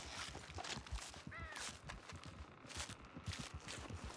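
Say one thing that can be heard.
A knife slices wetly through an animal's hide.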